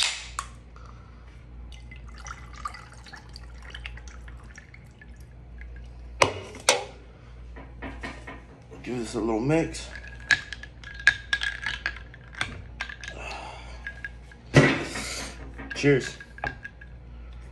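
A young man talks close up.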